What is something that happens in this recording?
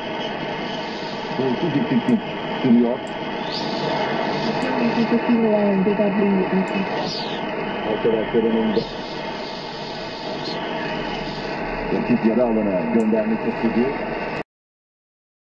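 A shortwave radio hisses with steady static.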